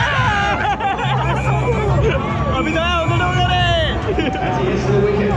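A young man talks and laughs with animation close by.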